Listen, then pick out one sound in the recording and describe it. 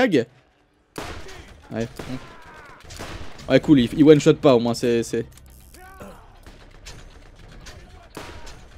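Gunshots fire in quick bursts.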